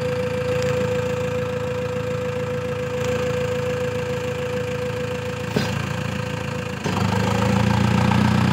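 A tractor engine rumbles and chugs close by.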